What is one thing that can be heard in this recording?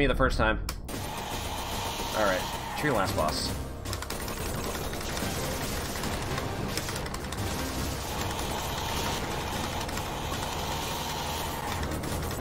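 Fast electronic game music plays throughout.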